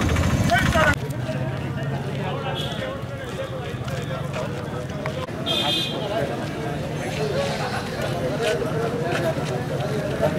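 A crowd of men murmurs and chatters outdoors.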